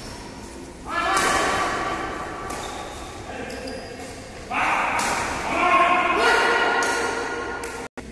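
Young men call out loudly across the court.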